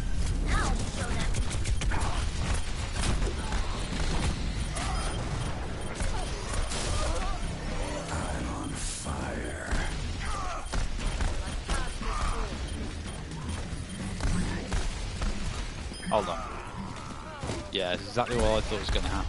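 Pistol shots fire in rapid bursts.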